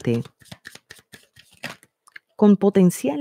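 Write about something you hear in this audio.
Playing cards riffle and flick while being shuffled.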